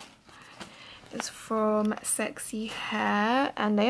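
A paper leaflet rustles and crinkles in a hand.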